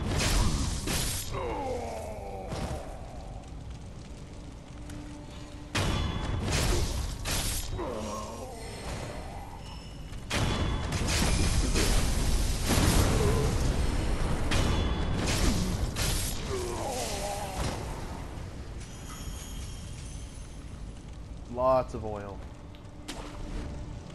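Fires crackle and roar.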